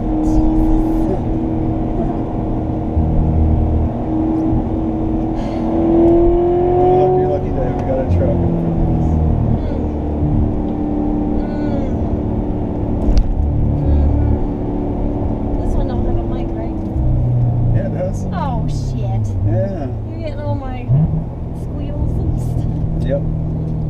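A sports car engine roars and revs up and down.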